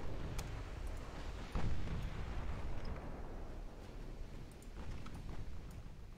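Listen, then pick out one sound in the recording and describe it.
Heavy naval guns boom in dull, distant thuds.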